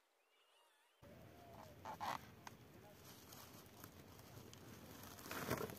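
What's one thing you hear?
A plastic sack rustles and crinkles as it is handled.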